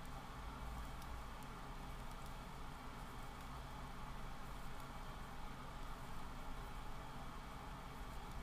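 A crochet hook clicks softly against yarn.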